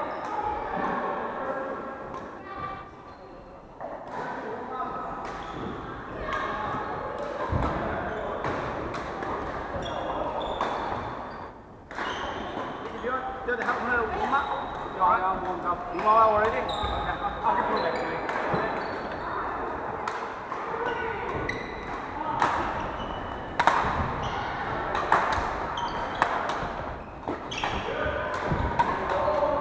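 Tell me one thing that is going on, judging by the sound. Players' shoes squeak on the wooden floor.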